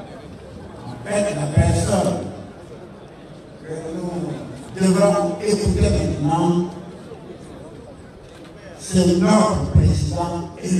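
A man speaks loudly and forcefully into a microphone through loudspeakers, in bursts with pauses, outdoors.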